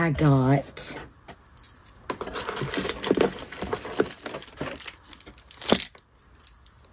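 Paper and cardboard rustle as a box is unpacked.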